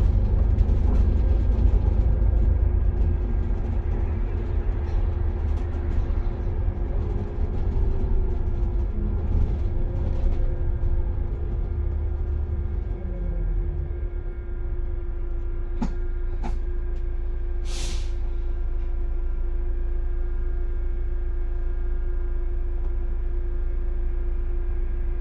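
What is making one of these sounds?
A vehicle's engine rumbles as it drives along a road.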